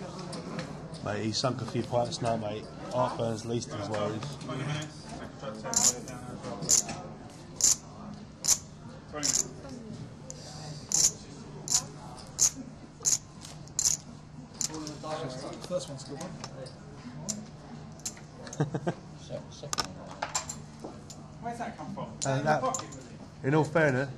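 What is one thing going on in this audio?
Men talk nearby in a low, casual tone.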